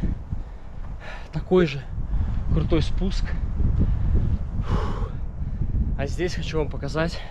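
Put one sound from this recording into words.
A young man talks casually close by, outdoors.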